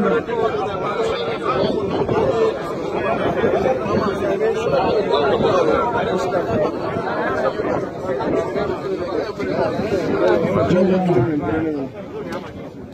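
A crowd of men talk and murmur all around, close by.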